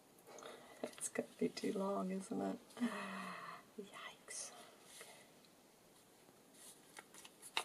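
Stiff card taps softly as it is pressed down.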